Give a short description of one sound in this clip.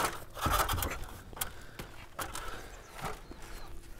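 A metal ladder creaks under a man's steps.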